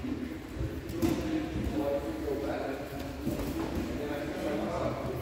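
Men talk in the distance in a large echoing hall.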